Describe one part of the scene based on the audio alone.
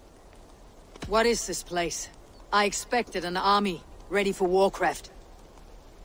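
A young woman speaks calmly and firmly.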